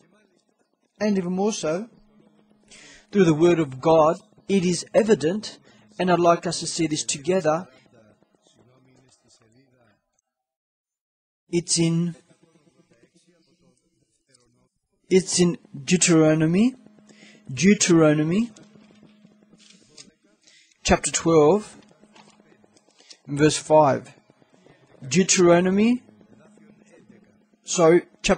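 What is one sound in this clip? A middle-aged man speaks calmly into a microphone in an echoing room, reading aloud with pauses.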